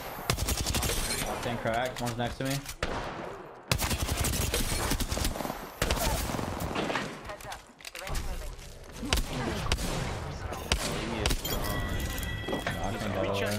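Rapid video game gunfire bursts out.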